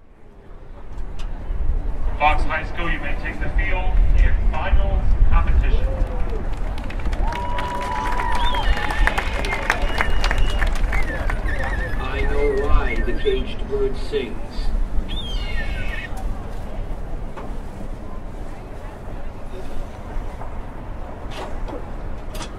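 A large crowd chatters and cheers in an open-air stadium.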